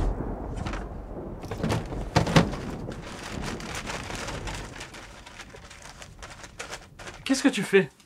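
Objects rattle and knock as someone rummages.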